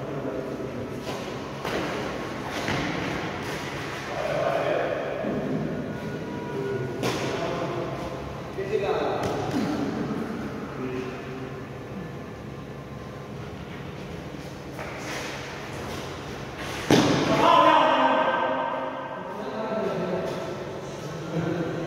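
Rackets hit a shuttlecock with sharp pops in an echoing hall.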